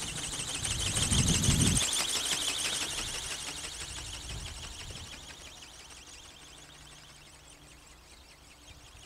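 A jet roars overhead and slowly fades into the distance.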